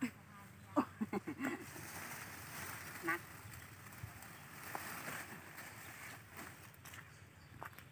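Leafy plants rustle as they are pulled and shaken.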